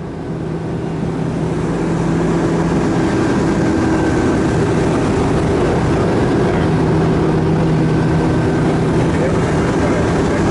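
Water churns in a boat's wake.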